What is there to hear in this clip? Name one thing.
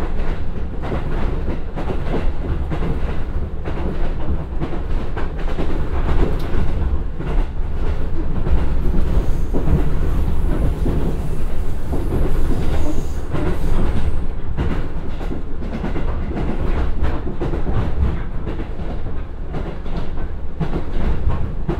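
Wind rushes past the moving train.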